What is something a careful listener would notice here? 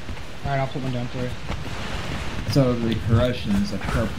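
Footsteps run over dirt.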